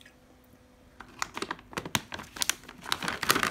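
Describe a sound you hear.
A plastic bag of rice crinkles and rustles.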